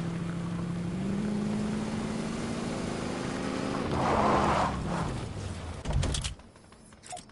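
A car engine roars and revs up.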